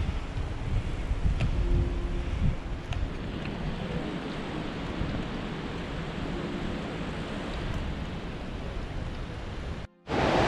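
Wind rushes steadily past a moving bicycle.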